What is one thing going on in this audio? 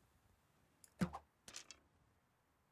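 A bowstring twangs as an arrow is released.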